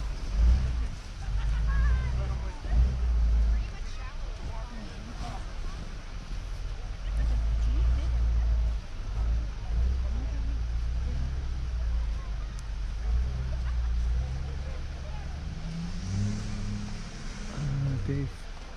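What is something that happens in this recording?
Hands pat and pack snow.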